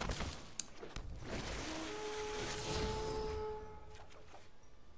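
A magical shimmering whoosh rings out.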